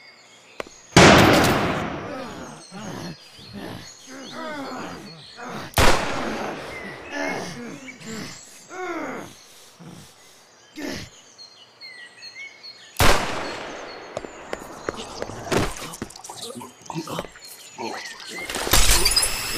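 A pistol fires loud shots that echo.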